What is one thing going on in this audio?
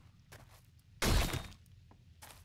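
A blade strikes flesh with a wet thud.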